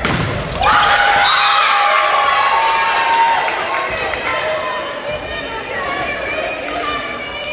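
Young women shout and cheer excitedly in an echoing gym.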